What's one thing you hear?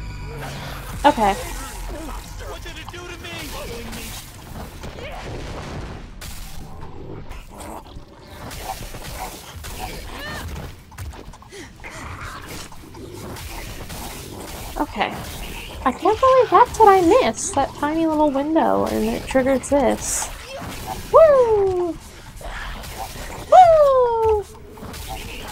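A monster lets out shrill, falling shrieks.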